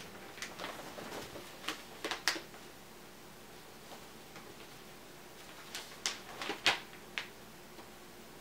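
Newspaper pages rustle and crinkle close by.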